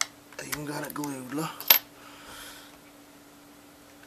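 A screwdriver is set down on a wooden table with a light clack.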